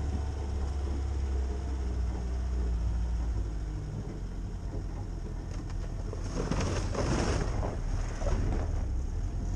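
A vehicle engine rumbles steadily at low speed.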